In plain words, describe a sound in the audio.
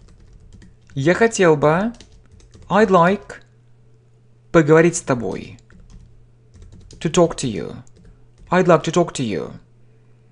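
A man speaks slowly and clearly in short phrases, close to a microphone.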